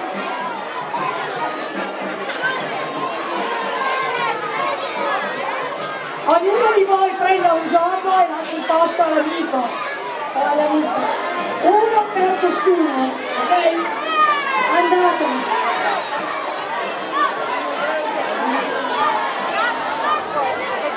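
A crowd of people chatters and calls out nearby.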